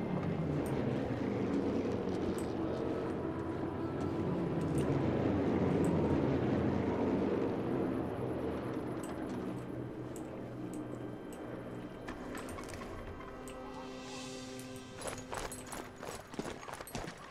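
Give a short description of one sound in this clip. Footsteps shuffle softly on a hard floor.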